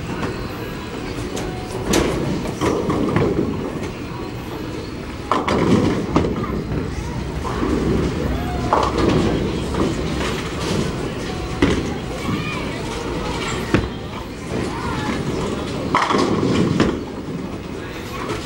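A large bowling hall echoes with a steady background rumble.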